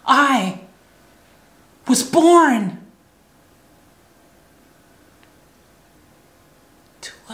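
A young woman exclaims loudly and expressively close to a microphone.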